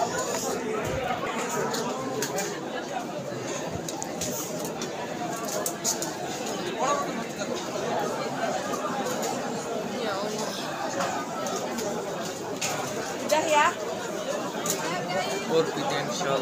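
A crowd murmurs and chatters all around in a large echoing hall.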